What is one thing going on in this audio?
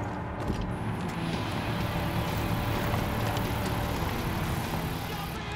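Footsteps crunch on gravel outdoors.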